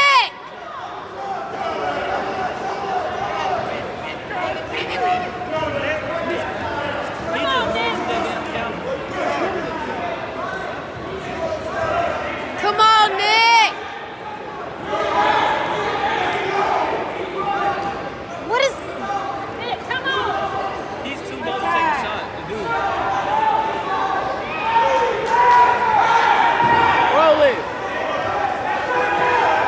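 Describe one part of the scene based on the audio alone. A crowd of spectators chatters and shouts in a large echoing gym.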